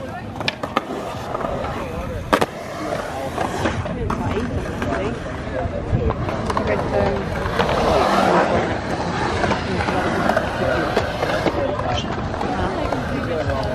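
A skateboard clacks against concrete.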